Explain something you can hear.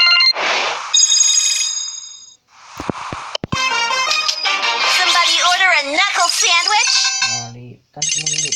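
A bright electronic game jingle plays, then stops.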